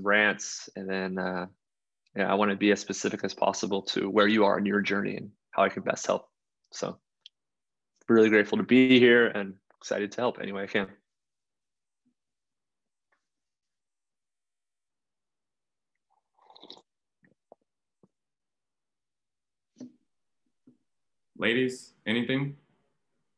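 A man talks calmly through an online call, in bursts with pauses.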